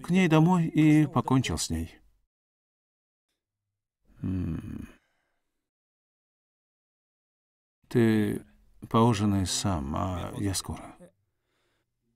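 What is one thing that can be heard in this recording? A young man speaks tensely close by.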